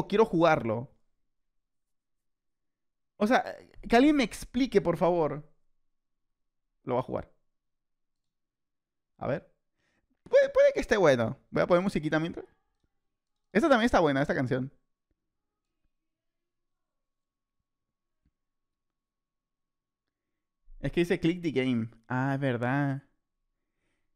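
A man talks with animation into a microphone, in short bursts.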